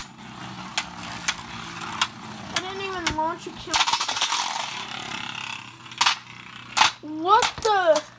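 Spinning tops clash together with sharp clicks.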